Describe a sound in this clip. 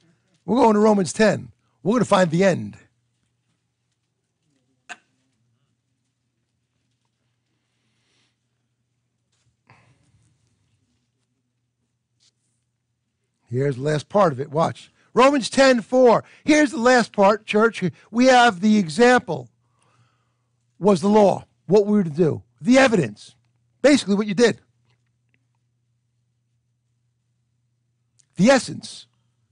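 An older man speaks calmly through a microphone, pausing often.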